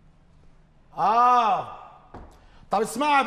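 A middle-aged man speaks loudly and sternly.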